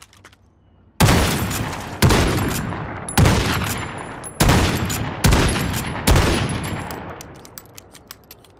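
A shotgun fires several loud blasts that echo away.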